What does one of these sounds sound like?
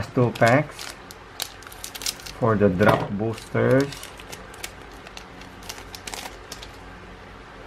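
A foil wrapper crinkles as it is handled.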